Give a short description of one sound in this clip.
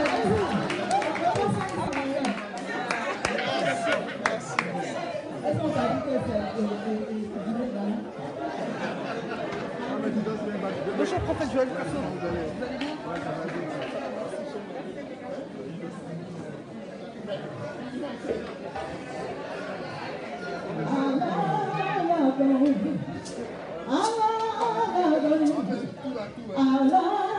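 A crowd of men and women chatter and talk loudly in an echoing hall.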